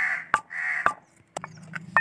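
A wooden pestle pounds in a clay mortar.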